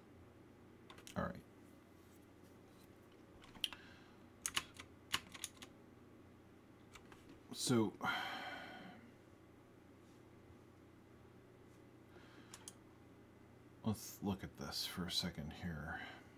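A man speaks calmly into a close microphone, in short bursts.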